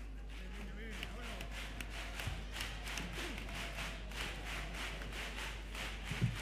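Feet stamp and shuffle on a wooden stage.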